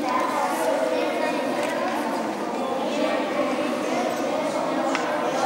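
A group of children sings in a large echoing hall.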